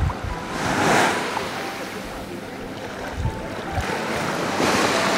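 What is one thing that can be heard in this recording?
Shallow water laps and splashes gently.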